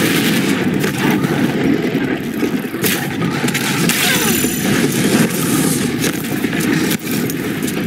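Blasts of fire burst and roar.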